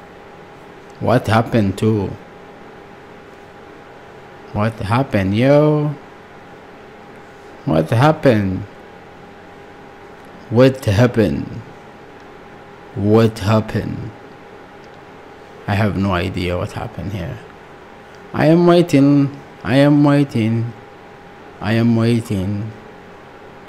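A young man speaks calmly in short phrases close to a microphone, with pauses between them.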